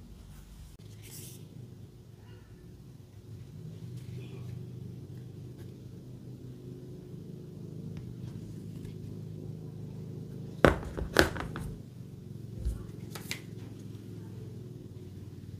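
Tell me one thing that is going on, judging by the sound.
A plastic phone case clicks and taps as it is handled.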